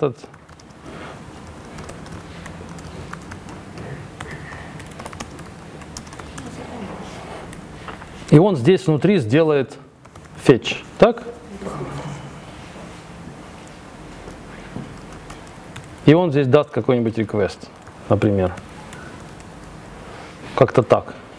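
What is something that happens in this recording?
Computer keys click as a man types.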